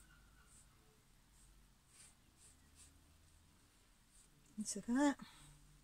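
A paintbrush brushes softly against canvas.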